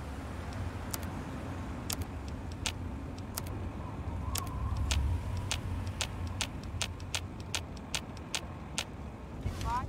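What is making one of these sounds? Soft clicks tick quickly as menu items are scrolled through.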